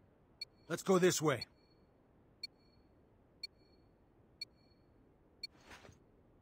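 A short electronic beep counts down once a second.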